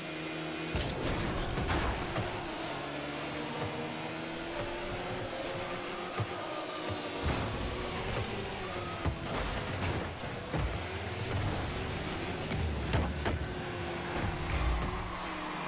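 A ball thuds against a car.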